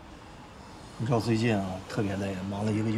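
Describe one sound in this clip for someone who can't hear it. A young man speaks in a low, tired voice, close by.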